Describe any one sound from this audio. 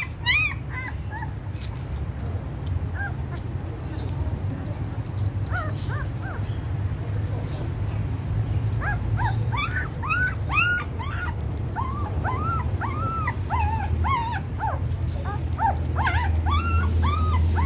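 Puppies whimper and squeal in high, thin cries.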